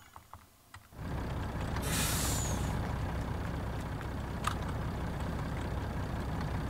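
A truck engine rumbles steadily as the truck drives along a road.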